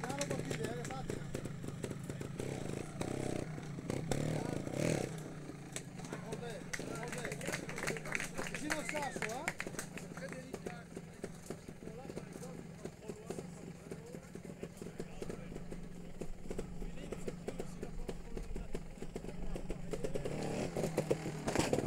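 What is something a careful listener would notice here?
A motorcycle engine idles and revs close by.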